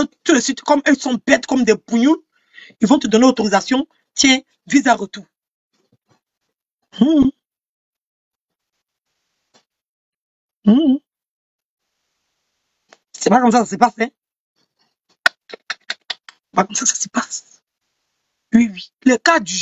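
A woman talks with animation, close to a microphone, in short bursts with pauses.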